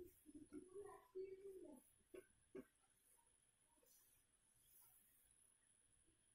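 A cloth wipes across a whiteboard.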